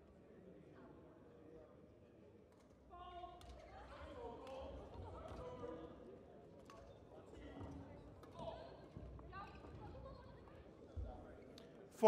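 Badminton rackets strike a shuttlecock with sharp taps.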